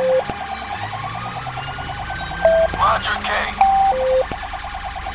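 A siren horn blares in short bursts.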